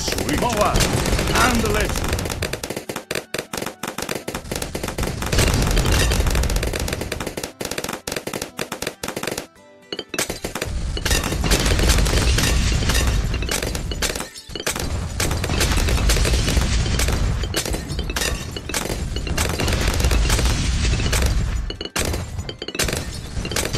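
Game explosions and pops burst rapidly and continuously.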